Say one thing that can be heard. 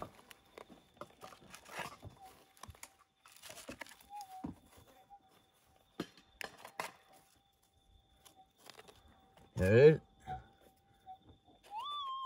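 Fingers scrape and dig through loose gravelly soil.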